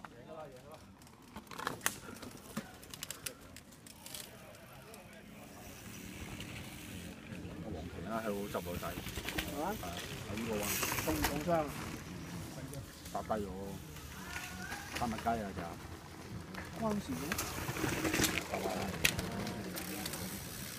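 Mountain bike tyres crunch over dirt and rocks.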